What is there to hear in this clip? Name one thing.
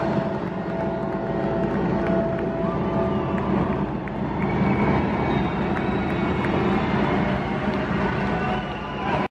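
A loud electric guitar plays through big speakers in a large echoing hall.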